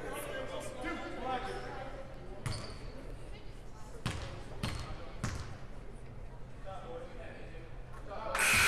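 Young players call out across an echoing gym.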